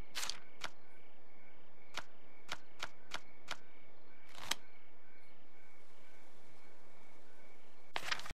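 Short, sharp clicks tick now and then.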